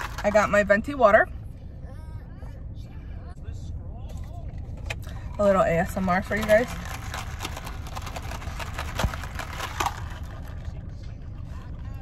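A young woman sips a drink loudly through a straw.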